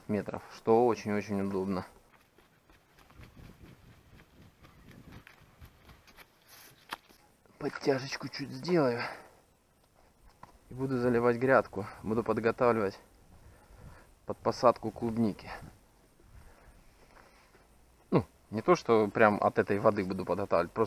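A man talks calmly close to the microphone, in short bursts with pauses.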